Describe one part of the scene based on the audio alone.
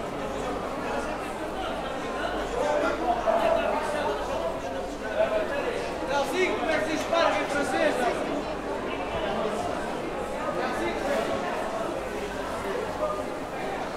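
A crowd of men and women chatters all around in a large echoing hall.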